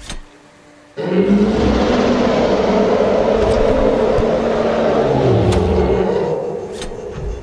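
A huge sea creature lets out a long, loud, deep roar.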